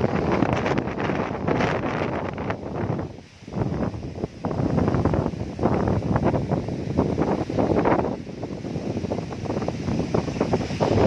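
Strong wind gusts roar outdoors.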